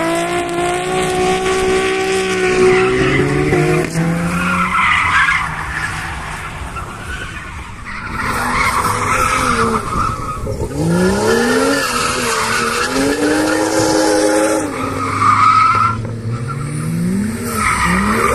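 Tyres screech on tarmac as a car drifts.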